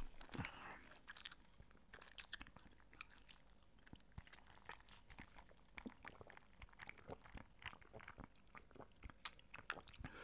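A man sips and slurps a drink through a straw close to a microphone.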